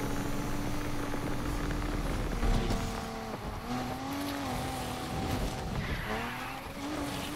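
A car engine roars and revs up and down.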